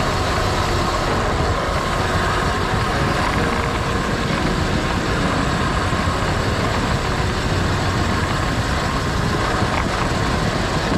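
Road bike tyres hum on asphalt.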